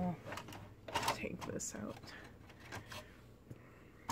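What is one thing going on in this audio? A plastic coffee pod clicks and rattles as a hand pulls it from a coffee machine.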